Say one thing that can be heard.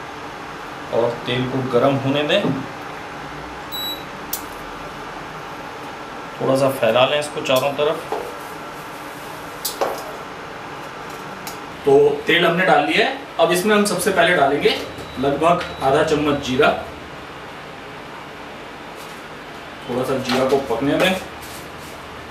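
A man speaks calmly and clearly into a microphone, in short bursts.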